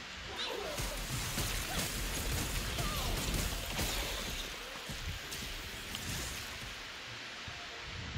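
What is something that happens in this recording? Fiery spells crackle and boom in a video game battle.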